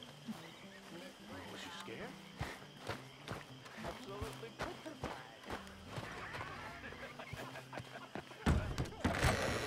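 Footsteps tread slowly on ground.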